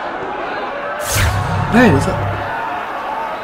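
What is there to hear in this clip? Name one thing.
A deep electronic whoosh swells up and fades.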